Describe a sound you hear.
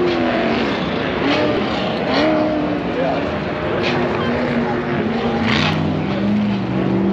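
Many off-road vehicle engines whine and rev across an open track.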